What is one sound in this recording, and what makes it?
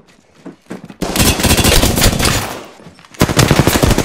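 Rapid gunfire rattles close by in bursts.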